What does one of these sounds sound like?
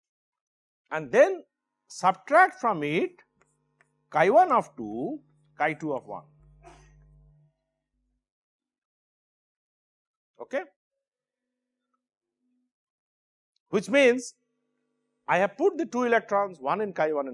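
A middle-aged man lectures calmly through a microphone, with pauses.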